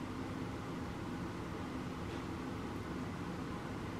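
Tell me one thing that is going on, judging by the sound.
Coffee pours over ice in a glass.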